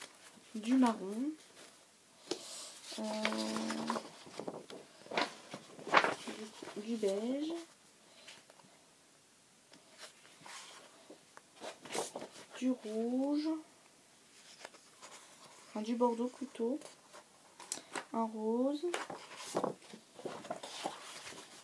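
Sheets of card rustle and flap as they are shuffled.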